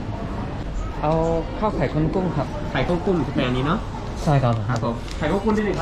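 A man speaks close by in short phrases.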